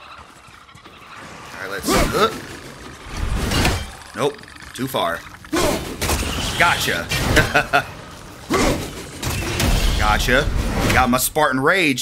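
An axe whooshes through the air and strikes with a metallic clang.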